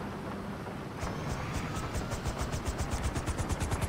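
A helicopter's rotor starts up and chops faster and faster.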